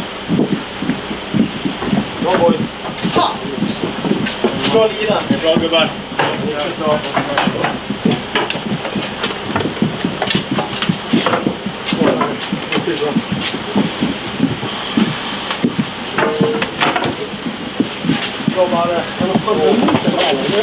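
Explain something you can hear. Men talk and shout with excitement in an echoing room.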